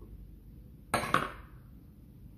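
A spatula taps against a plastic bowl.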